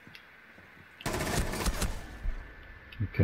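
Gunshots fire in a rapid burst.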